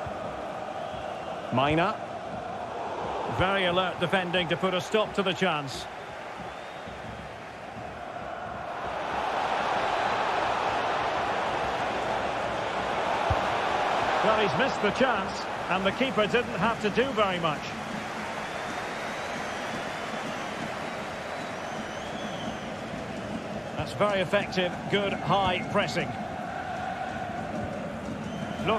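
A stadium crowd roars steadily, swelling now and then.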